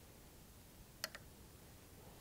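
A glass slide clicks onto a microscope stage.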